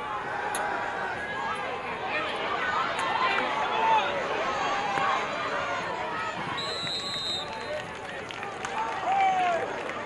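A crowd cheers in a large outdoor stadium.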